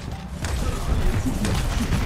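An explosion bursts close by.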